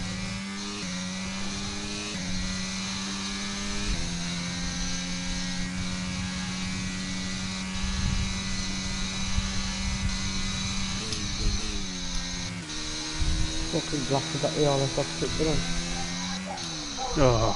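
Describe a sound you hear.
A racing car engine roars at high revs, its pitch stepping with each gear change.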